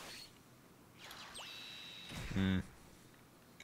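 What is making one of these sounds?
A magical whoosh and chime ring out.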